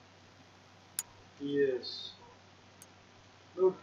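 A short electronic menu click sounds as a selection is confirmed.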